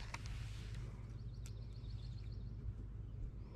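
A fishing reel clicks softly as it is wound.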